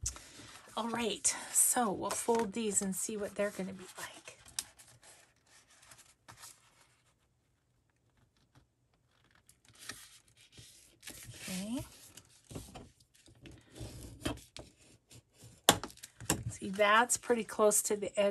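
Paper rustles as it is handled and folded.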